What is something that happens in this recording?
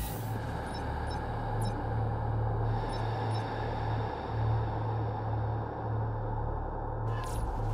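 Menu clicks sound briefly.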